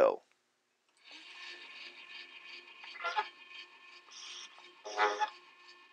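An old cylinder phonograph plays a faint, scratchy recording.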